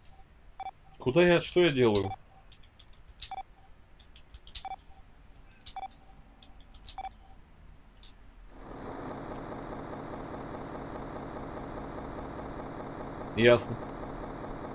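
A young man speaks with animation into a nearby microphone.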